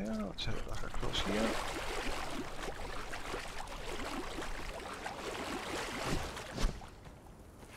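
Water splashes steadily as someone swims through it.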